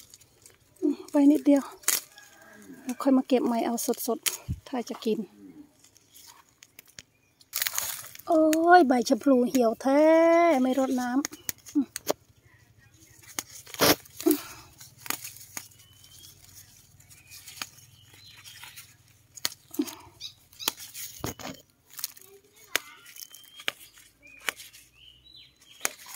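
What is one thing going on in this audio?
Leaves rustle and snap as they are picked by hand.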